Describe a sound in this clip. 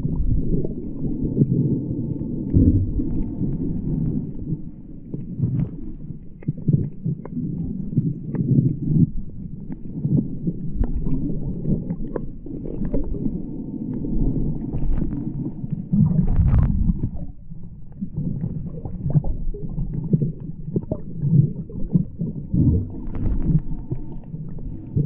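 Water swirls and rumbles with a muffled, underwater sound.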